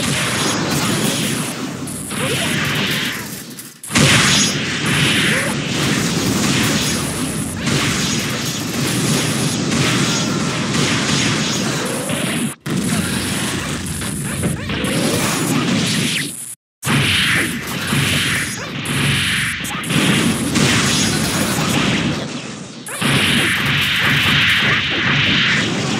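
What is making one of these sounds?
Rapid game punches and blasts pound without pause.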